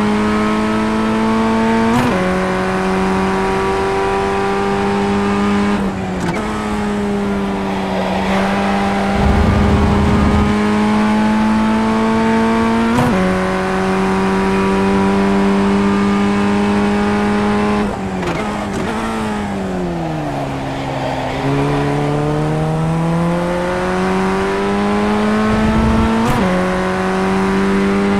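A racing car engine whines at high revs, dropping sharply with each gear change.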